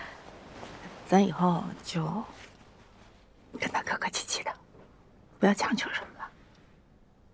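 A middle-aged woman speaks softly and gently, close by.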